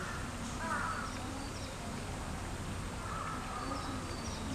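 Crows call nearby.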